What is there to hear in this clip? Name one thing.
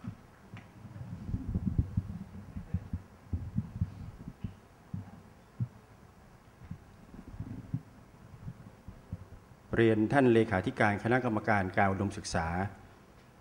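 A middle-aged man speaks calmly into a microphone, heard over loudspeakers in a large hall.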